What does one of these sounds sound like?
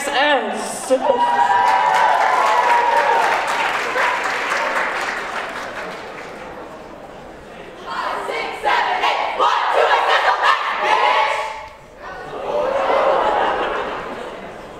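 A group of young performers chant and call out together in a large hall.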